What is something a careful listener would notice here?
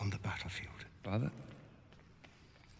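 A young man speaks firmly, close by.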